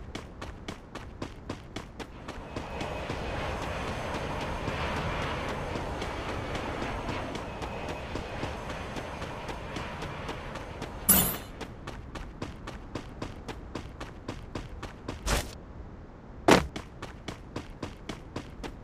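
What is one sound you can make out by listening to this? Quick footsteps run steadily over the ground.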